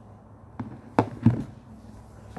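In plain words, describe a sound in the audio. A golf ball is struck with a sharp knock.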